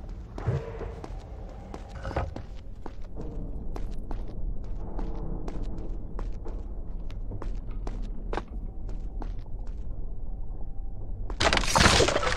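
Quick footsteps patter on a stone floor.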